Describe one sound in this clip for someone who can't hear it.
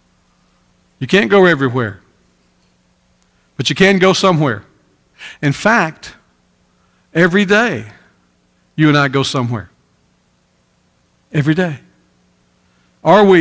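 A middle-aged man speaks slowly and deliberately through a microphone, with pauses between phrases.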